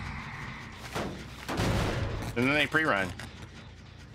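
A heavy metal engine is struck with a loud clanking crash.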